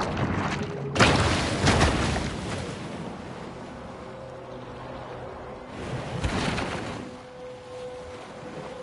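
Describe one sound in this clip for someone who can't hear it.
Water splashes as something breaks the surface and swims through it.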